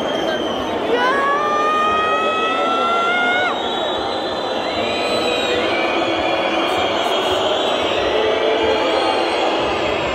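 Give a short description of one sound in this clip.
A large crowd chants and cheers loudly in an echoing arena.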